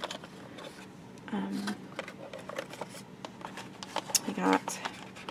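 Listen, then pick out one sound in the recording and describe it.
Cardboard packaging rustles as it is handled.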